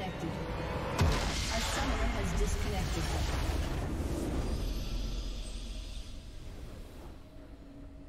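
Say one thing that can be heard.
A loud, rumbling game explosion bursts and slowly dies away.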